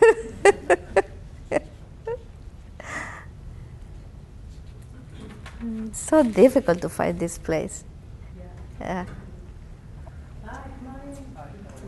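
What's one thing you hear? A woman speaks in a room with some echo.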